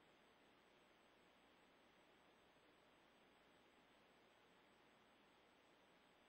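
Wind blows steadily across open ground.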